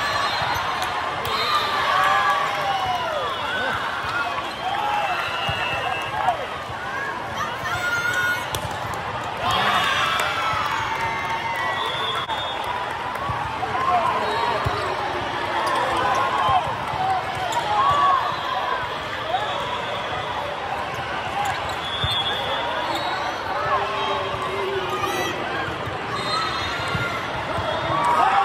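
Many voices chatter and call out across a large echoing hall.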